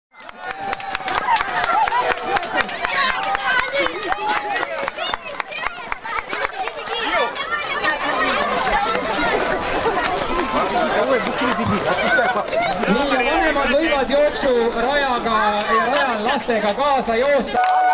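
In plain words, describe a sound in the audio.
A crowd of children and adults shouts and cheers outdoors.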